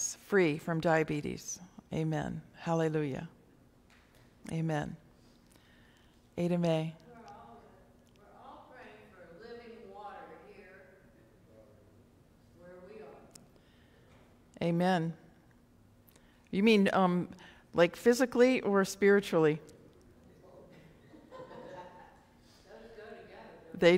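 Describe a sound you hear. A middle-aged woman speaks calmly through a microphone in an echoing room.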